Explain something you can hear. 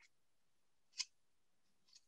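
A metal scoop clinks against a bowl.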